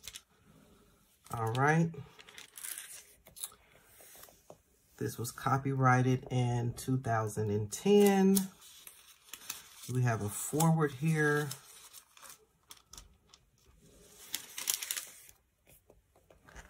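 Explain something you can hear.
Thin paper pages rustle as they turn.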